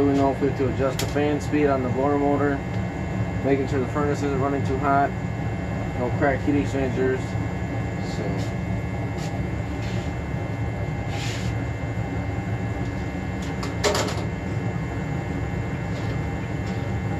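A furnace hums steadily.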